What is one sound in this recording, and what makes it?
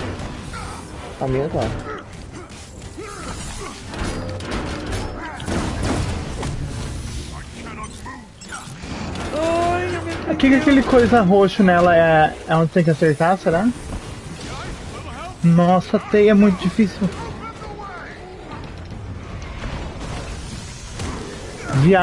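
Energy blasts and heavy metallic impacts crash in a fast, chaotic battle.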